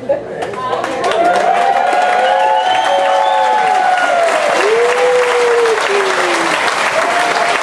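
A crowd of women cheers and laughs.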